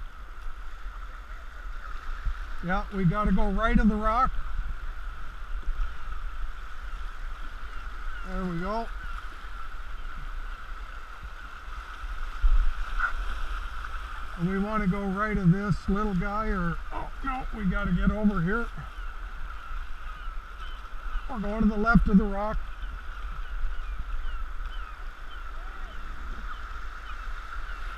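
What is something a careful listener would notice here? River rapids rush and churn steadily.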